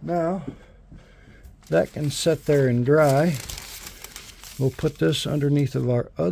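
Paper rustles as it is handled and slid into place.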